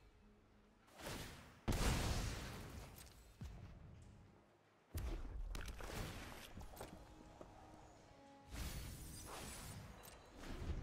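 Magical whooshes and chimes sound as cards are played in a game.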